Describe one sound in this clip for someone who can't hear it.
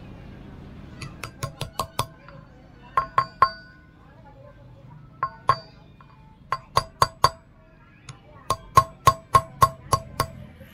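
A hammer taps sharply on a metal bolt in quick bursts.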